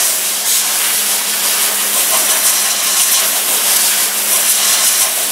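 An air-powered tool grinds metal with a loud, steady high hiss.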